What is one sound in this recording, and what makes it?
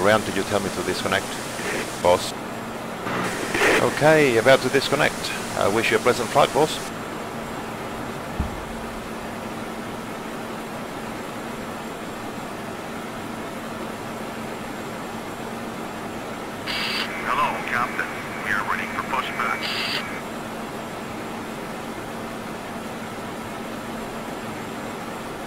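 A jet engine idles with a steady low hum.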